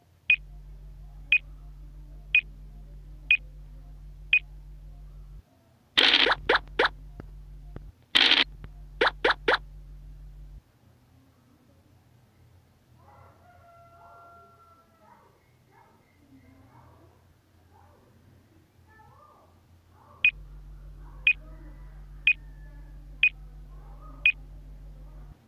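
A game's turn timer ticks once a second.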